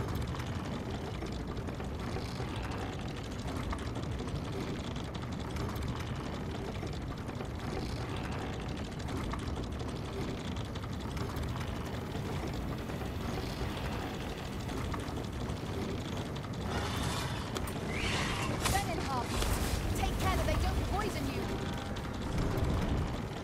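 A wooden lift rumbles steadily as it rises.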